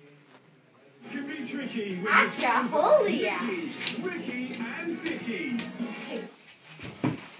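Voices and music play loudly from a television nearby.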